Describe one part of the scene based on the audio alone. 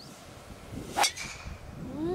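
A golf driver strikes a ball with a sharp crack.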